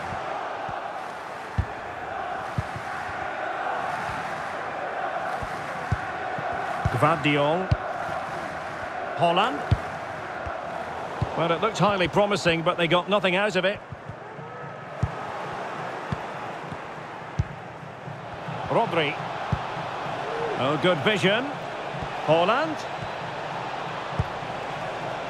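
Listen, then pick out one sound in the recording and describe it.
A large crowd murmurs and chants steadily in a stadium.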